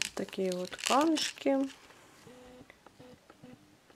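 A plastic bag crinkles softly in a hand.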